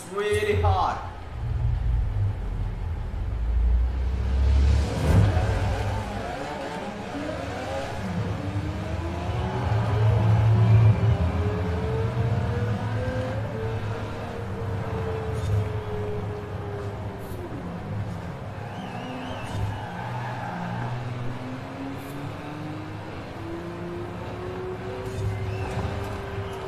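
A racing car engine roars, revving up and climbing through the gears.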